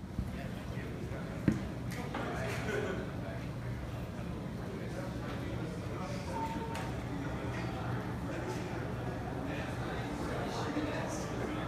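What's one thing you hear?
A crowd of men and women chat in a large echoing room.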